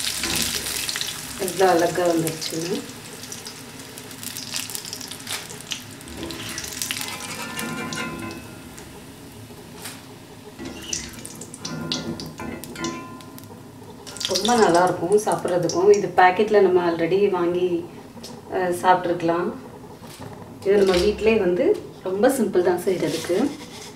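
A metal strainer clinks and scrapes against a pan.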